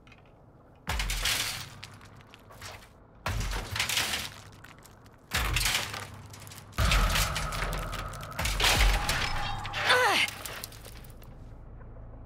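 A corrugated metal panel rattles as it is pried off a wall.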